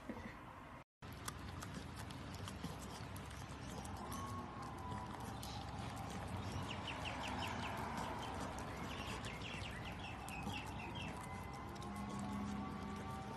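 A puppy chews and crunches a strawberry.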